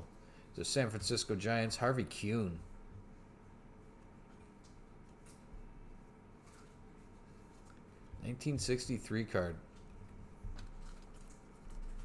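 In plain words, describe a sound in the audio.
A stiff card rubs softly against fingers as it is turned over.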